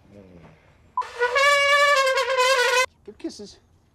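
A trumpet plays loudly close by.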